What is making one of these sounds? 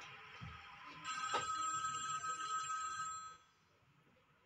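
A phone rings with a repeating electronic tune.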